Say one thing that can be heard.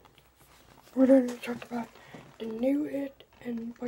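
A boy speaks close to the microphone with animation.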